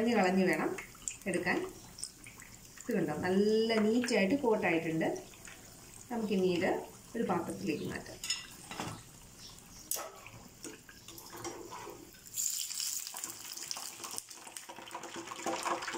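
A metal strainer scrapes and clinks against a pan.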